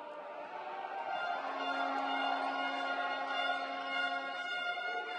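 A group of young men chant in unison in a huddle.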